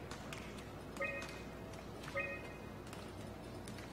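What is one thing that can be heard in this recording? Short electronic menu beeps chime twice.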